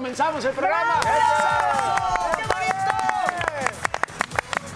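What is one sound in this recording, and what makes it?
Several men and women cheer with long, loud shouts.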